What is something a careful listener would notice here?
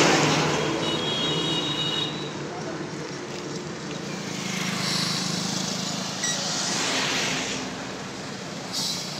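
A motorbike engine hums as it passes.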